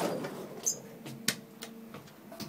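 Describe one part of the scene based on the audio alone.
A lift button clicks as it is pressed.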